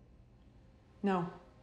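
A second woman answers in a low, quiet voice.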